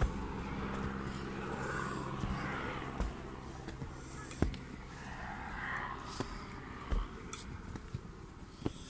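Footsteps thud on a dirt trail.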